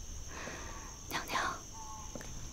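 A woman speaks softly nearby.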